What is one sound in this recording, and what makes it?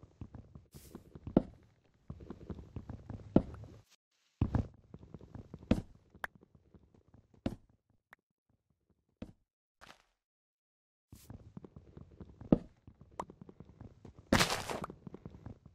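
Wooden blocks are chopped with an axe in quick, repeated knocks.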